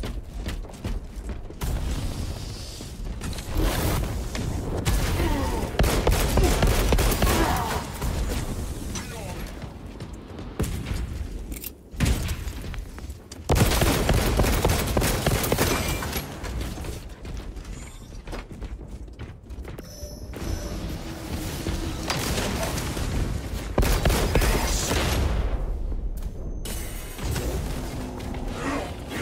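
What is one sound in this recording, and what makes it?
Guns fire in loud rapid bursts.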